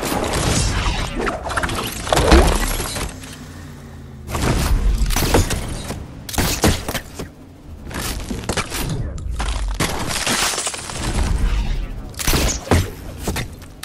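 Game building pieces clatter and thud as they are rapidly placed.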